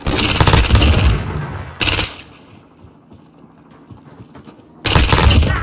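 A rifle fires in rapid bursts at close range.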